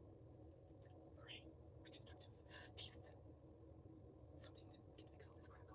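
A woman speaks close up, softly and slowly.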